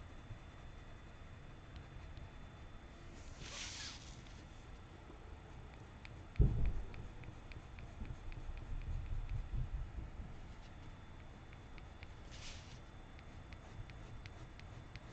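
A colored pencil scratches softly across paper.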